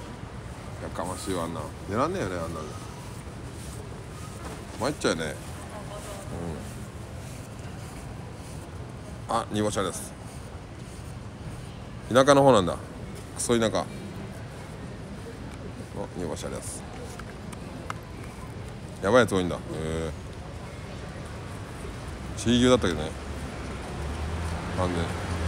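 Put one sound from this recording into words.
A man speaks quietly and close by, in short bursts.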